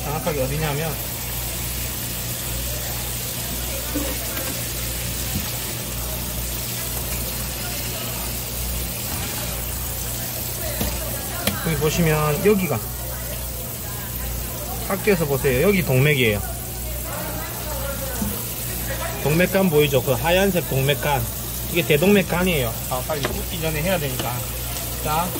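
Water sprays steadily from a hose onto a wet surface.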